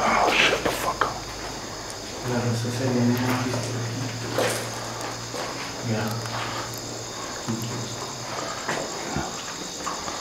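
A man talks in a low voice close by.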